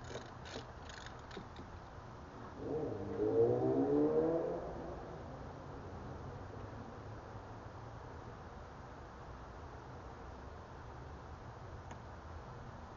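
Small plastic parts click and rattle as a hand handles them close by.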